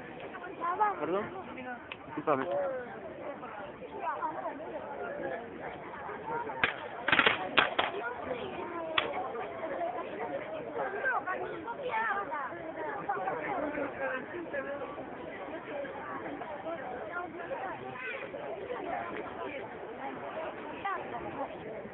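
A crowd of men and women chatters and calls out nearby.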